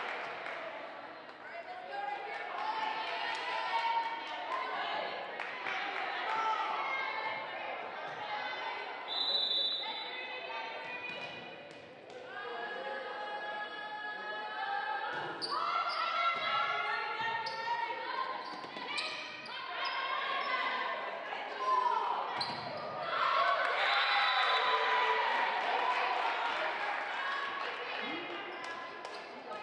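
A volleyball is struck with a hard slap.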